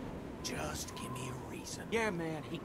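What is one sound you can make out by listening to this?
A woman speaks quietly.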